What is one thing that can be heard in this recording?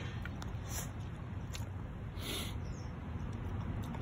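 A dog sniffs at plants close by.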